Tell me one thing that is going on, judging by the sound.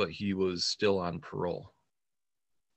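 A middle-aged man talks calmly over an online call.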